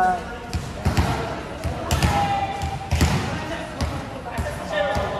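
A volleyball thumps against hands and bounces in a large echoing hall.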